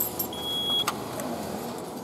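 A ticket machine whirs and clicks as it hands out a ticket.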